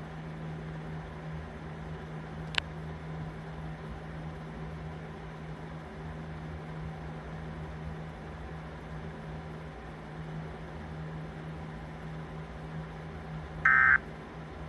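A television set hums steadily.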